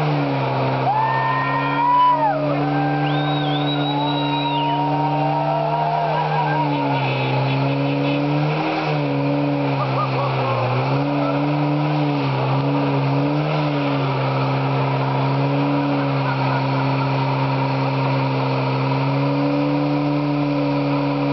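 A car engine roars loudly at high revs, holding a steady pitch with brief dips.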